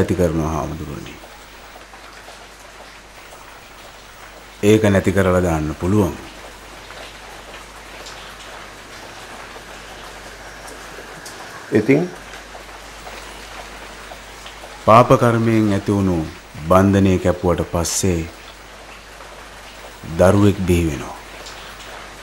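A man speaks calmly in a low voice, close by, in short bursts with pauses.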